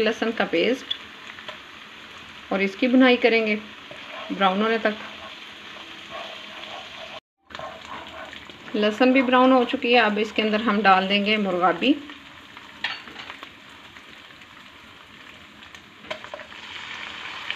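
Oil sizzles and bubbles in a hot pan.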